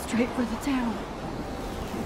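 A young woman speaks into a close microphone with animation.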